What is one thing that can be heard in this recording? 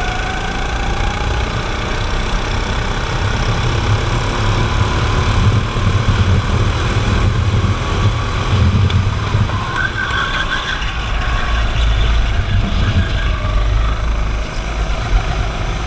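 A go-kart engine buzzes loudly up close.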